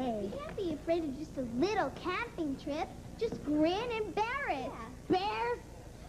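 A girl speaks calmly.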